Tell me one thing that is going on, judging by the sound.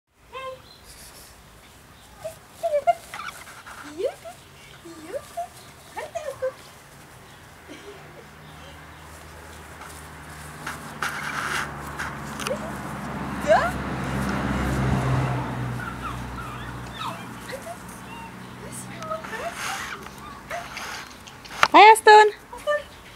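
A young woman talks softly and playfully nearby.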